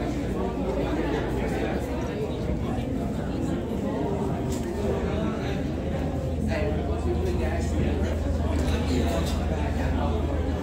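Footsteps shuffle across a wooden floor.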